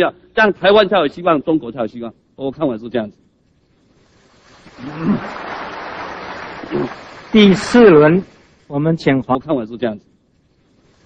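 A man speaks formally through a microphone in a large hall.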